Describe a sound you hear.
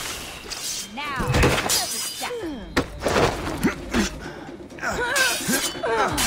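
Fists thud in a scuffle.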